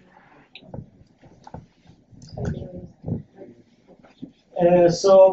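A man speaks quietly in a large room.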